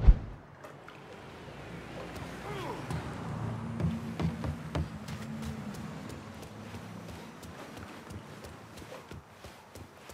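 Footsteps tap on hard ground and wooden boards.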